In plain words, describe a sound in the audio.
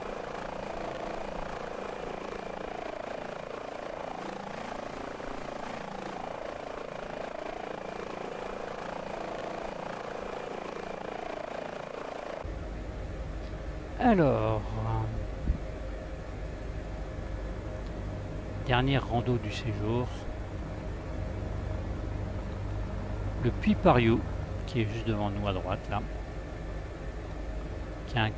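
A helicopter's engine and rotor whir steadily.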